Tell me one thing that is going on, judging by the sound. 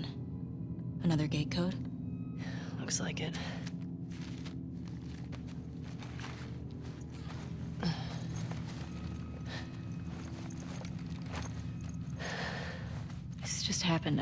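A young woman speaks quietly and calmly nearby.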